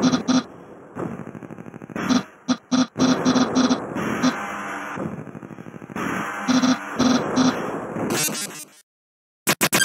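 Upbeat electronic game music plays.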